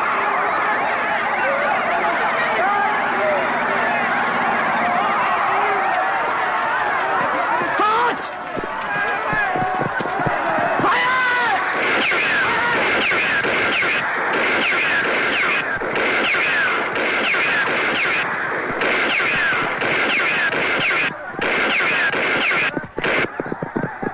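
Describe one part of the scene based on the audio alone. A large crowd shouts and screams in panic.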